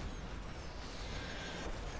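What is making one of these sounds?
Footsteps run quickly across dry ground.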